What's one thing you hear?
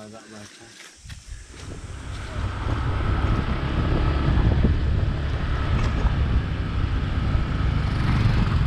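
Wind rumbles and buffets loudly.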